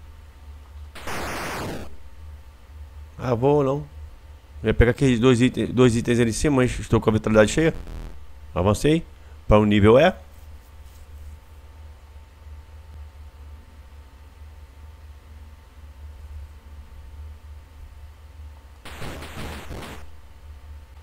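A retro game shot zaps with a short hiss.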